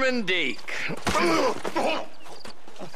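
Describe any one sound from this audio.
A man speaks roughly and threateningly.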